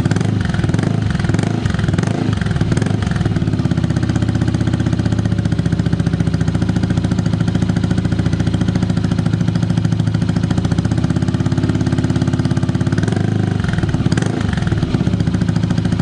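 A motorcycle engine revs up briefly and settles back.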